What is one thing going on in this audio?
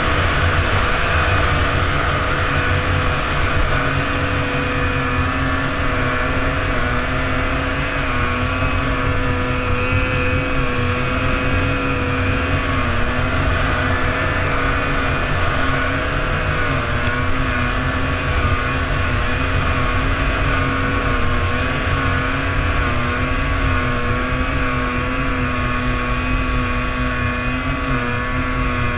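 A snowmobile engine drones loudly and steadily, rising and falling slightly in pitch.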